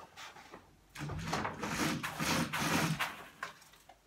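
Feet shuffle and thump on the floor.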